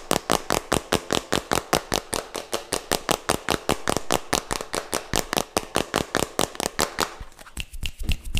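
Fingers tap rapidly on a plastic container close to a microphone.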